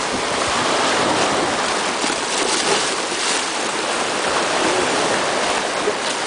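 Water splashes loudly against a rock.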